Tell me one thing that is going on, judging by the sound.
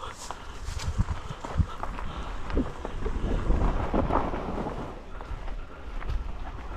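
A bicycle rattles and clatters over bumps on a rough trail.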